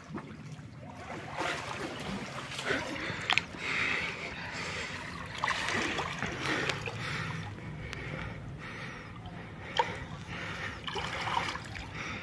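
Water splashes as a man swims through a pool.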